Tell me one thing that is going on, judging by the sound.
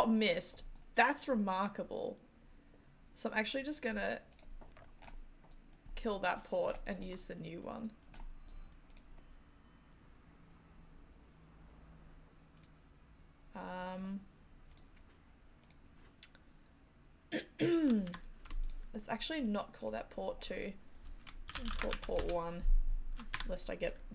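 A young woman talks calmly into a close microphone, pausing now and then.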